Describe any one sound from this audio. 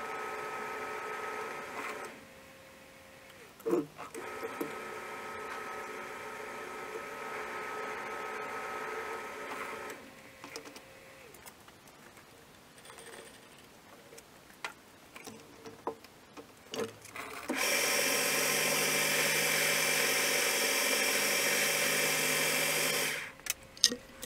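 A lathe motor hums steadily and stops at times.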